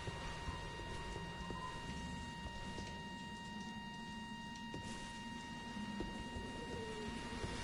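Footsteps shuffle over rocky ground.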